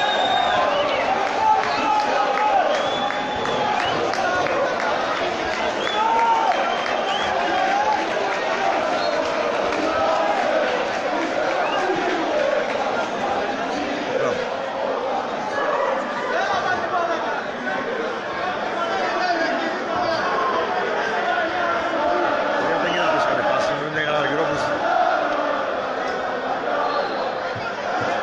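A large crowd chants and sings loudly throughout.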